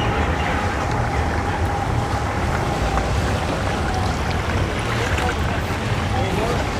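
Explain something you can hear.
Outboard motors rumble steadily as a boat moves slowly through water.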